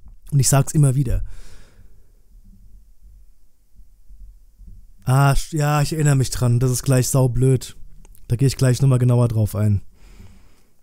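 A man speaks casually and close into a microphone, in short bursts.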